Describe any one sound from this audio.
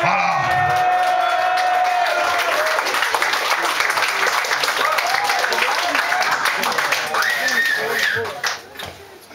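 A rock band plays loudly in an echoing room, with distorted electric guitars.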